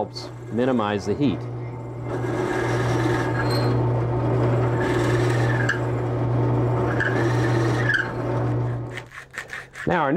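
A drill press hums steadily as it bores into wood.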